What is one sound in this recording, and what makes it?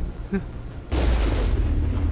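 A cannon fires with a deep boom.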